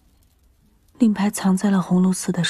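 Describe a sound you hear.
A young woman answers calmly, close by.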